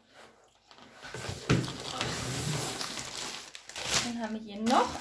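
A cardboard box scrapes and rustles as it is handled.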